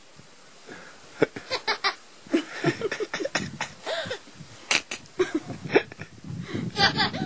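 A young woman talks softly and playfully up close.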